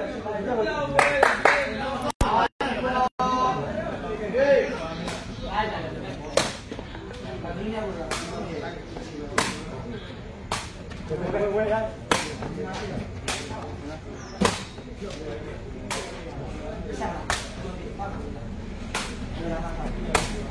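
A rattan sepak takraw ball is kicked with sharp thwacks.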